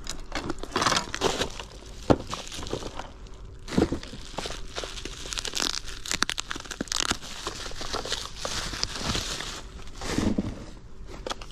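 A plastic bag crinkles and rustles as it is torn open.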